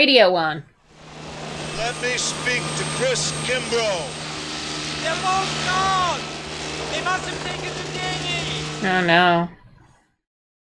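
A man speaks urgently over a headset radio.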